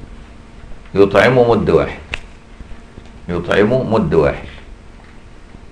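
A man sings in a drawn-out, melodic voice through a microphone, in two phrases.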